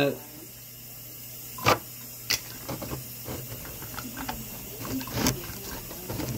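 A metal lid scrapes and clicks onto a glass jar.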